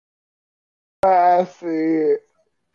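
A woman speaks in a drawn-out, singing voice over an online call.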